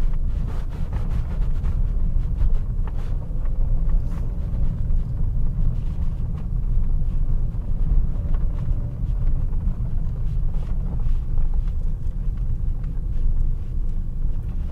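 Tyres crunch over gravel and bumps.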